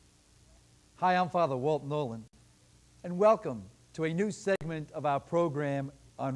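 A middle-aged man speaks cheerfully and clearly into a microphone.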